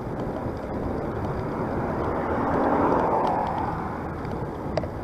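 A car drives past nearby, rising and fading.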